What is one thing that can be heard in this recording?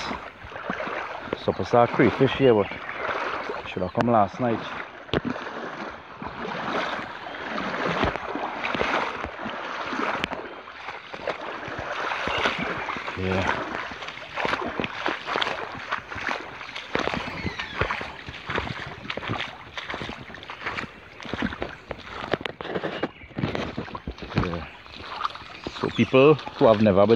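Water ripples and splashes in a shallow stream close by.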